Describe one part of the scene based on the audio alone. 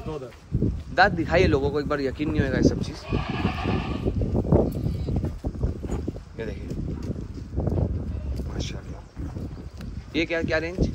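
A goat bleats loudly.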